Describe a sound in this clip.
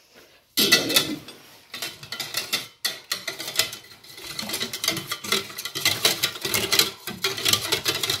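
A wire whisk clinks rapidly against a metal pot.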